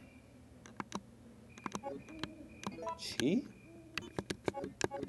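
Short electronic menu blips click as options are selected.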